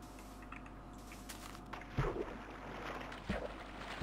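Water splashes softly as a swimmer paddles.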